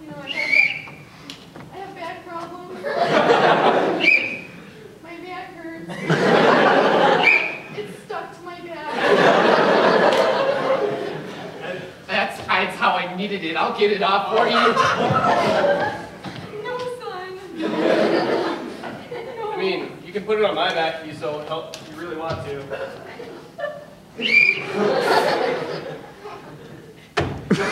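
A young man speaks with animation on a stage in a hall.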